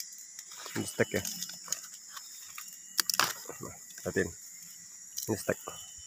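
Leaves rustle as a hand brushes through branches.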